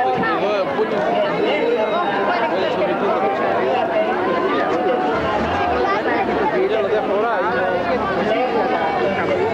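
A crowd of men and women talks and chants outdoors all around.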